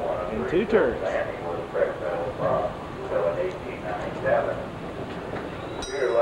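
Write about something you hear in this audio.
A tour trolley rumbles past slowly.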